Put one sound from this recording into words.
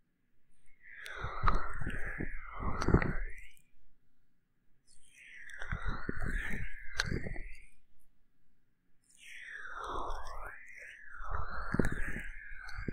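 A young woman speaks softly and playfully close to a microphone.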